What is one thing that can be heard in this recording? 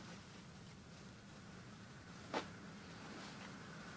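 Denim rustles as a hand lifts and shifts a pair of jeans.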